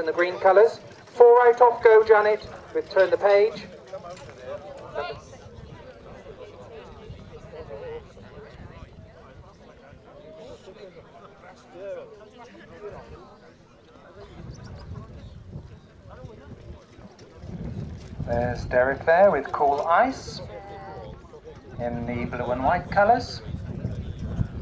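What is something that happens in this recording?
A group of adult men and women chat nearby outdoors.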